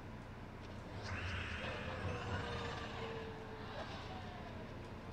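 Game effects whoosh and chime.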